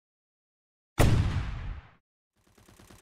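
A rocket launcher fires with a loud boom that fades away.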